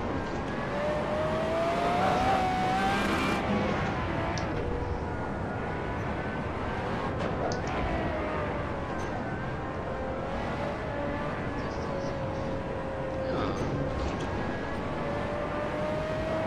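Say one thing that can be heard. Tyres hum and rumble on the track.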